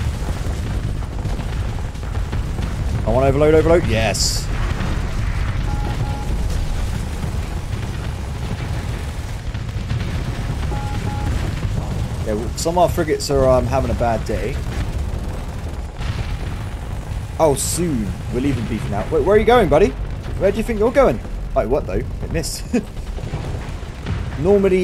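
Explosions rumble low and steadily.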